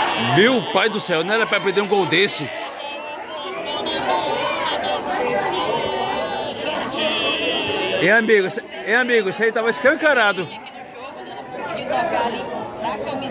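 Several men chatter nearby outdoors.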